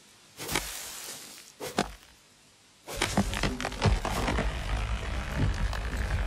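An axe chops into a tree trunk with sharp knocks.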